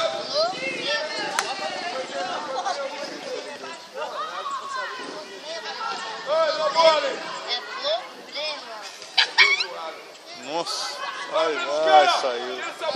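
Young players shout and call to each other outdoors on an open field.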